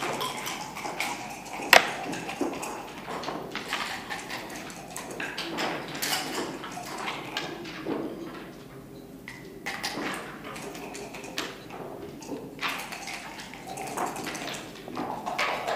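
Game pieces click sharply onto a wooden board.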